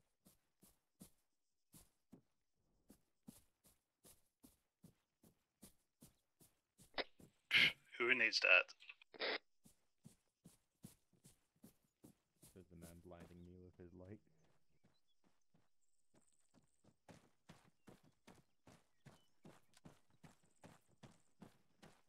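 Footsteps tread steadily over grass and hard ground.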